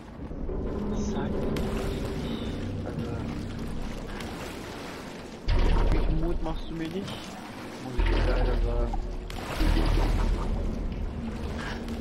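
Liquid splashes and gushes as it pours onto a floor.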